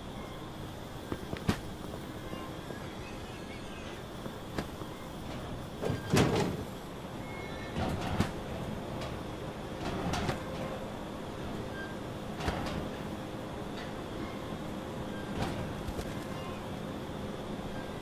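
Footsteps scuff softly on a hard floor.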